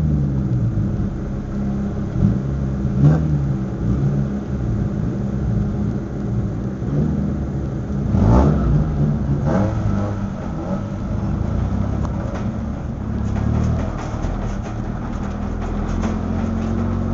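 A race car engine idles and rumbles loudly from inside the car.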